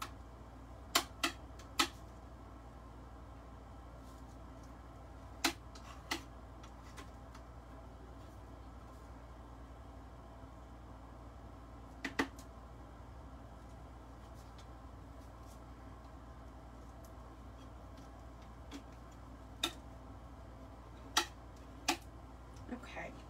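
A craft knife scrapes and taps on a cutting mat.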